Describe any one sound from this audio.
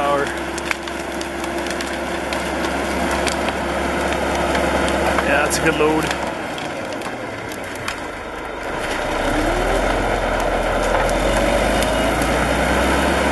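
A bulldozer engine rumbles and roars loudly.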